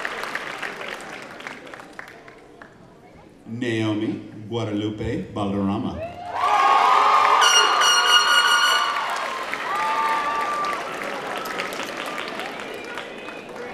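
A crowd claps and cheers in a large echoing hall.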